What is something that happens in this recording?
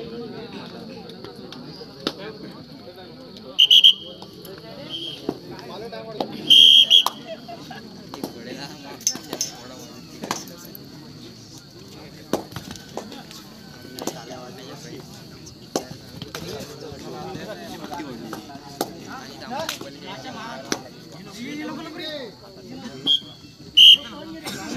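A crowd chatters and shouts outdoors.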